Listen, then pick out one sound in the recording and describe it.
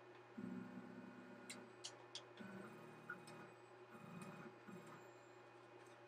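A small machine motor whirs in short bursts.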